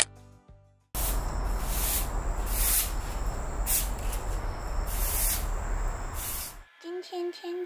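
A broom sweeps a floor with brisk scraping strokes.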